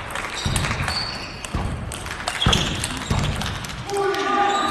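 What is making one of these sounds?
A ping-pong ball clicks back and forth off paddles and a table in a quick rally.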